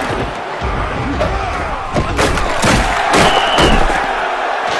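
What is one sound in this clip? Football players collide in a tackle with heavy thuds.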